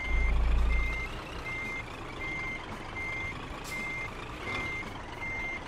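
A truck's reversing alarm beeps.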